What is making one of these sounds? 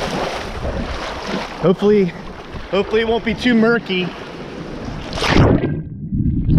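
Waves splash and wash around in the sea.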